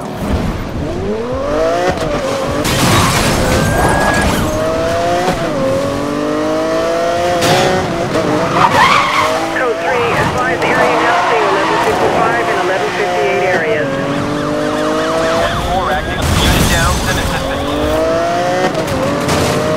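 A sports car engine roars and revs up and down through the gears.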